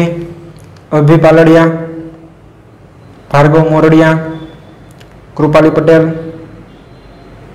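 A young man speaks calmly and close by, in short phrases with pauses.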